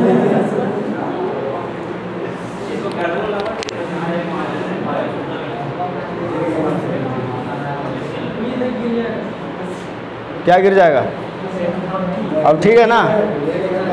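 A man lectures steadily through a clip-on microphone, close by.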